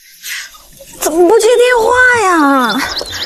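A young woman speaks on a phone with rising, questioning tones outdoors.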